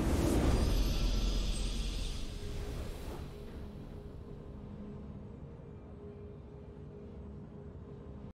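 A triumphant game victory chime rings out and fades.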